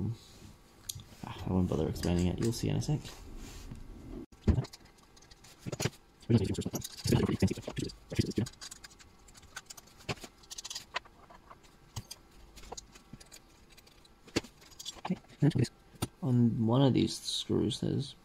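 Small metal parts click and tap as they are handled.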